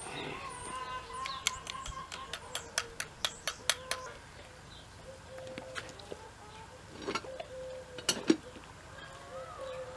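A farrier's tool scrapes and taps on a horse's hoof.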